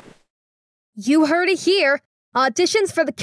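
A cartoon character with a high, girlish voice speaks cheerfully.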